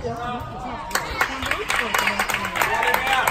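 Spectators clap and cheer.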